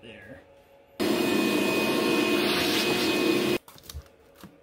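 A vacuum cleaner roars loudly, then cuts off.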